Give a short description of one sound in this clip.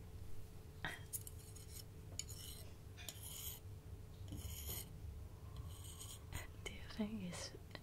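Chopsticks tap and scrape on a microphone close up.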